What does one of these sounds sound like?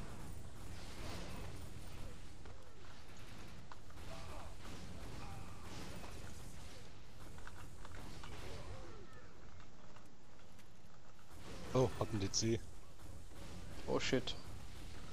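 Energy blasts burst with a crackling hiss.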